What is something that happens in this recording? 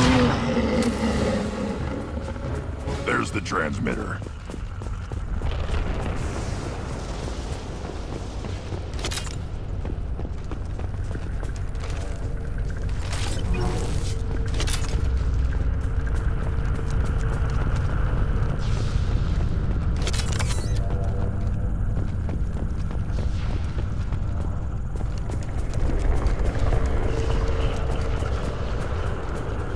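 Heavy armored footsteps thud steadily on metal and dirt.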